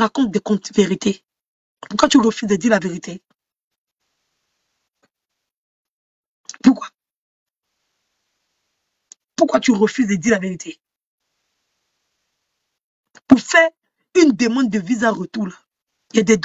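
A young woman speaks with animation close to a microphone, in short bursts with pauses.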